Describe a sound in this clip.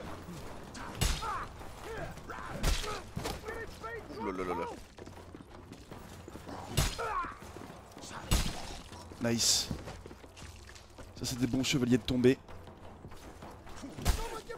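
Metal weapons strike and clash in sharp, sudden blows.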